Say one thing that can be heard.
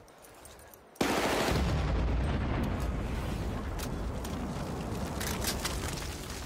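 A loud explosion bursts close by and rumbles on.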